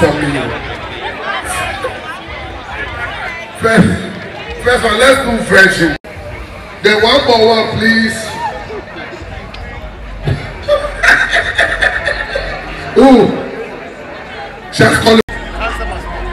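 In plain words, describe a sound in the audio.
A crowd chatters and cheers at an outdoor concert.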